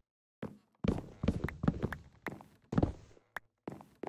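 Stone blocks crack and break under a pickaxe.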